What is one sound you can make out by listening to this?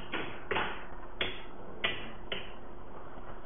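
Small plastic buttons click as they are pressed.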